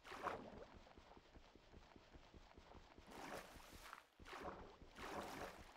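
Water swishes and splashes as something swims underwater.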